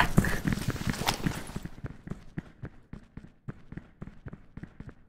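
Footsteps thud quickly and evenly on a hard floor.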